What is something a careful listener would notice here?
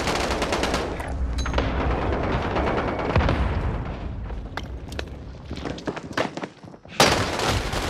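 Rapid gunfire crackles close by.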